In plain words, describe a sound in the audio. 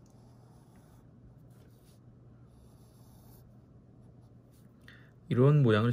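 A pencil scratches lightly across paper.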